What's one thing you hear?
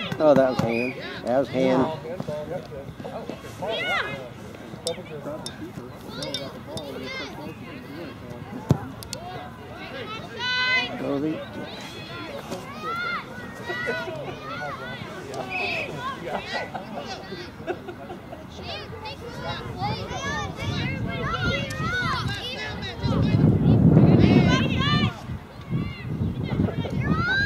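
Young players and spectators shout and call out across an open field, outdoors.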